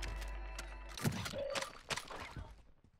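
A metal box clicks open.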